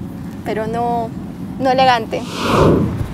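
A young woman speaks close by in a drawn-out, teasing tone.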